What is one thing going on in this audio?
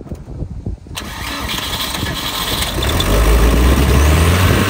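An engine turns over and catches.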